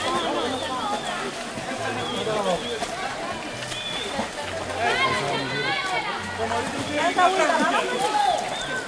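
Several people talk and call out nearby.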